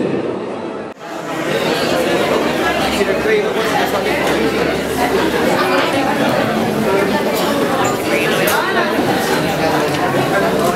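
A crowd of men and women chatters loudly nearby.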